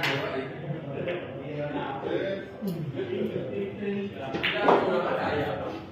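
Pool balls clack together and roll across the table.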